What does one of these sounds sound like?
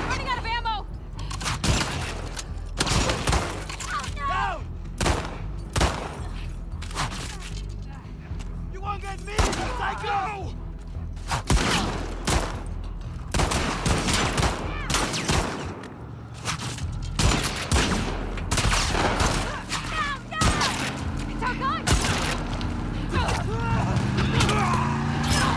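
Gunshots crack loudly, one after another.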